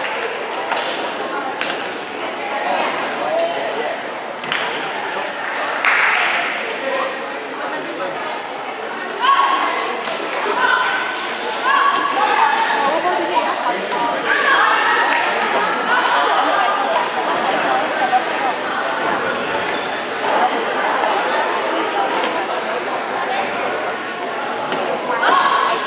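A crowd of young people chatters in a large echoing gym.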